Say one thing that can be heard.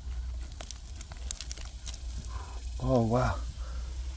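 Dry soil scrapes and crumbles under a digging hand.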